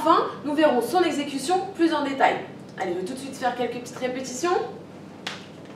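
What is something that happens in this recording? A young woman speaks calmly and clearly into a nearby microphone.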